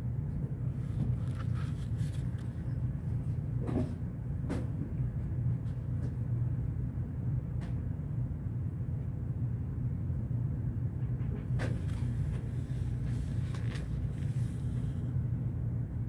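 A book's pages rustle and creak as hands handle it.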